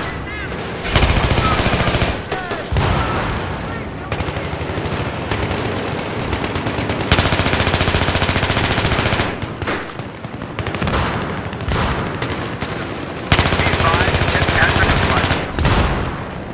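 An assault rifle fires in rapid automatic bursts.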